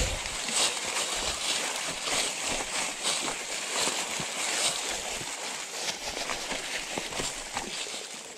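Dry leaves crunch underfoot on a forest trail.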